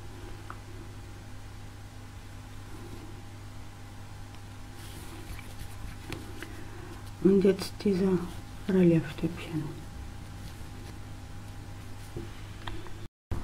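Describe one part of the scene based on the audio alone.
A crochet hook softly scrapes and clicks as thread is pulled through loops.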